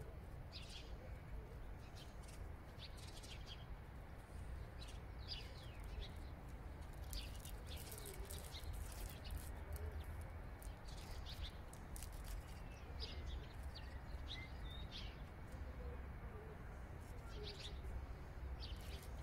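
A falcon tears at its prey with its beak.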